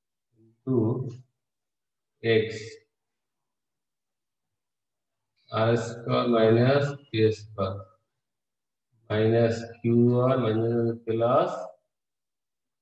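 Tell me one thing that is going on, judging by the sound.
A man speaks calmly and clearly, close by, in short bursts with pauses.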